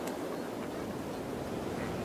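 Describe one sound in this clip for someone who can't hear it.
Waves crash on rocks.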